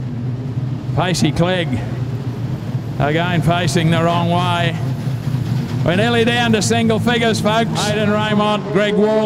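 Race car engines rev loudly up and down as the cars pass close by.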